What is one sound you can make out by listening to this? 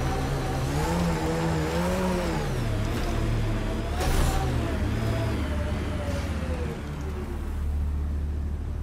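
A vehicle engine hums and whines steadily as it drives over rough ground.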